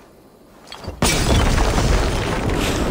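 Wooden barrels burst and crack apart.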